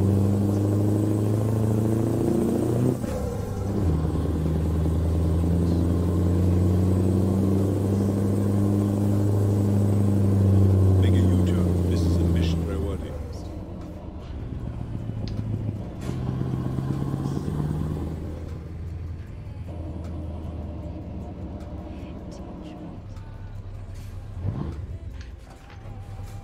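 A truck engine hums and drones steadily, rising and falling as it changes gear.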